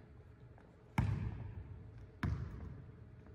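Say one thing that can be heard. A basketball bounces on a hard court in an echoing gym.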